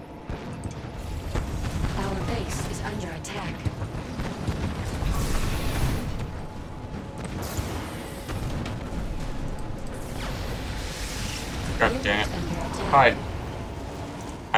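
Explosions and weapon fire rumble in a battle.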